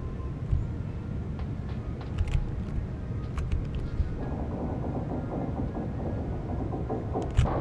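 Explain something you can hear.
A huge gear grinds and rumbles as it turns.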